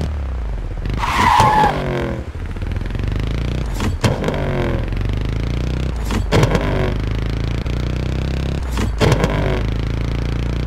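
A motorcycle engine shifts gears with sharp jumps in pitch.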